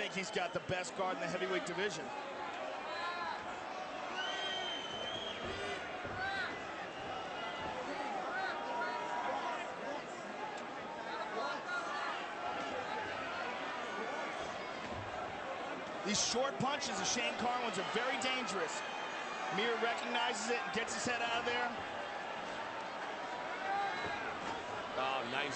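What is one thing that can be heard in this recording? A large crowd murmurs and shouts in a big echoing arena.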